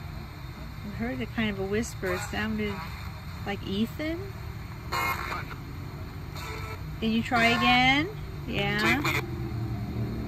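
A small radio briefly picks up snatches of voices and music.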